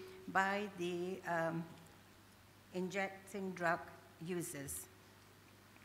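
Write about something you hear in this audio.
An elderly woman speaks slowly and emotionally into a microphone, heard through a loudspeaker.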